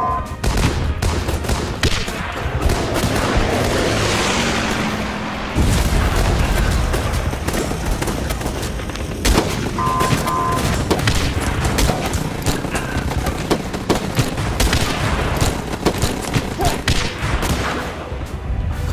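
Guns fire rapid shots amid a battle.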